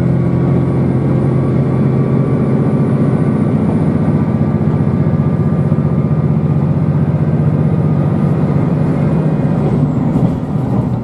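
A train's motor hums with a steady tone that slows and fades.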